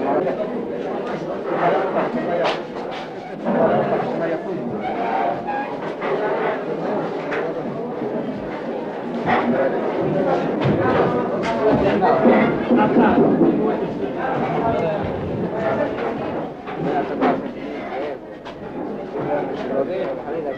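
A crowd of men talks and shouts all around, close by.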